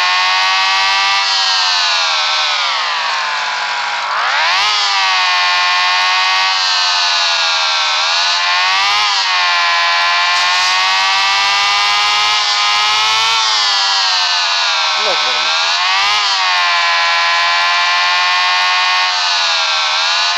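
A motorbike engine whines loudly, its pitch dipping and rising as it revs.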